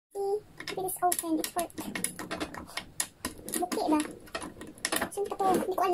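A metal key clicks and turns in a small lock.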